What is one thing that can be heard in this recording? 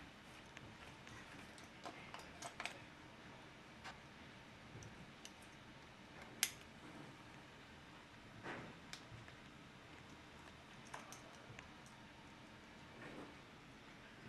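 Buckles and straps click and rustle as gear is fastened.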